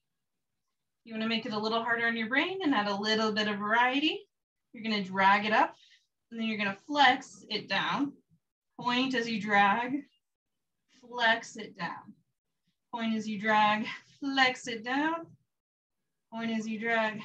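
A woman speaks calmly and clearly, giving instructions in short phrases.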